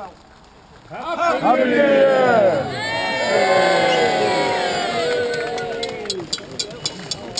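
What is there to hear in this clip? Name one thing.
A crowd of men and women sings loudly together outdoors.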